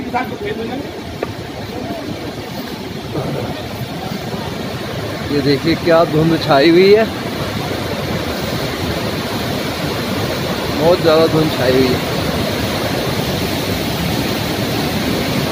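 A swollen river roars and rushes steadily.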